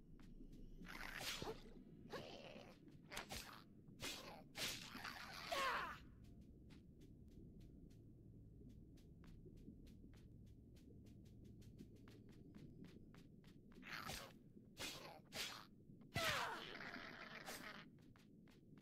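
Sharp whooshes and thudding hits sound during a fight.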